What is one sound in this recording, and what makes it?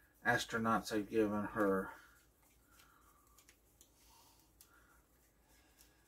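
A deck of playing cards riffles and rustles in someone's hands.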